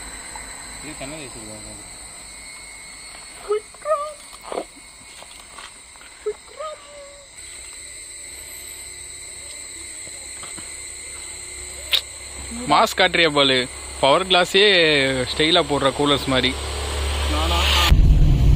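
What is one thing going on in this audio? Young men talk casually close by.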